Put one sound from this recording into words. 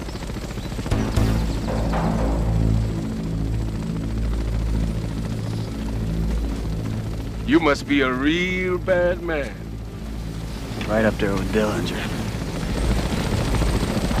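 A helicopter drones overhead with a steady, thudding hum.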